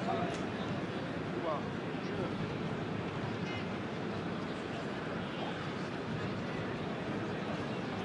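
A large stadium crowd murmurs and chants steadily in the distance.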